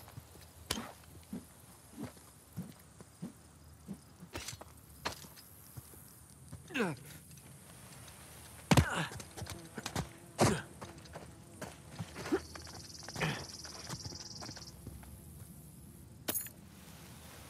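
Footsteps scuff and tap on stone and dirt.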